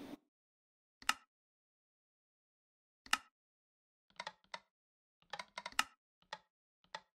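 Game menu buttons click several times.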